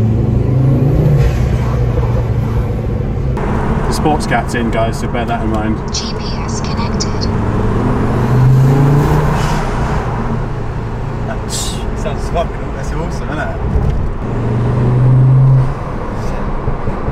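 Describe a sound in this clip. A car engine hums steadily, rising and falling in pitch.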